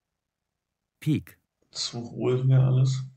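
A young man speaks casually into a nearby microphone.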